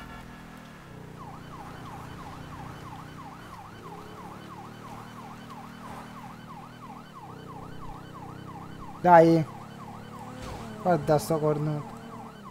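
A siren wails with a fast, repeating rise and fall.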